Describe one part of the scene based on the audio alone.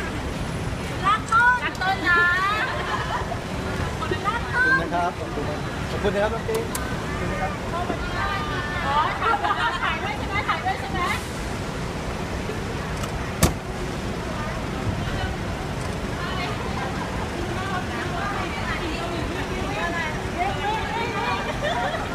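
Young women shout and scream excitedly nearby.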